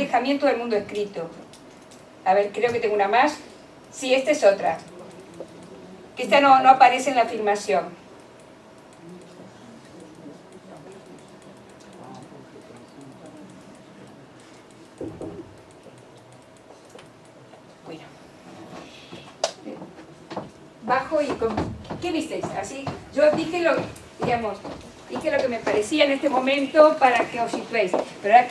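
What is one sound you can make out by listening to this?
A woman speaks calmly through a microphone, in a room with some echo.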